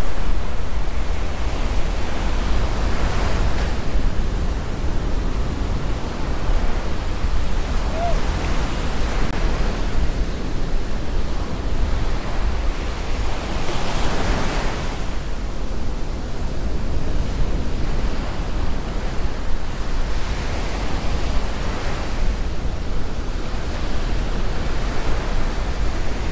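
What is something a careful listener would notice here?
Wind blows hard, rumbling steadily.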